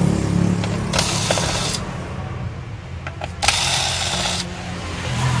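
An electric screwdriver whirs in short bursts.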